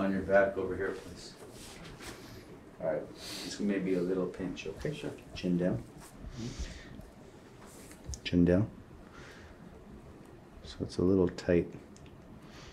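A man speaks calmly and clearly close by, in short phrases.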